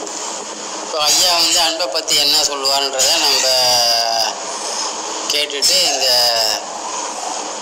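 A middle-aged man speaks calmly, close to a phone microphone.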